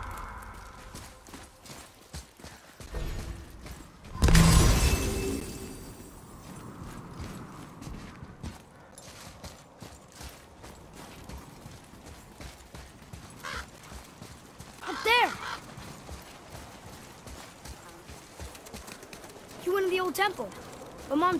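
Heavy footsteps crunch through snow.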